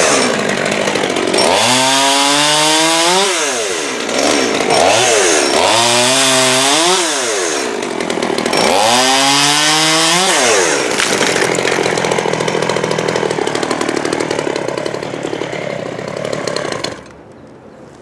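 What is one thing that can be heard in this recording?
A chainsaw revs up and down loudly, cutting wood.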